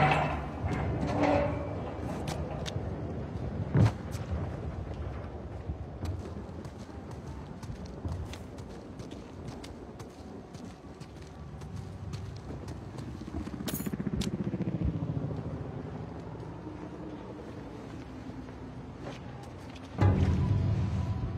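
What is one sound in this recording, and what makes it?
Footsteps crunch slowly over loose ground.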